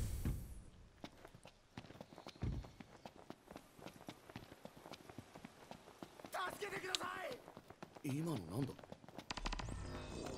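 Quick footsteps run over dry ground.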